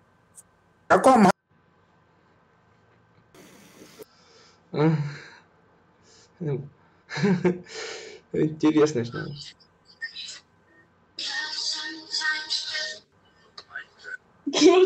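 A young man talks and laughs close to a microphone.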